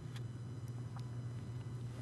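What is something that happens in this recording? A man sets a cup down on a table with a light knock.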